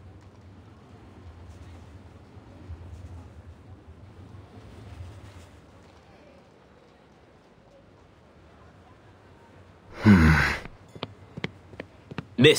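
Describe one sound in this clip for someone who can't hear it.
Horse-drawn carriages and trams rumble along a street.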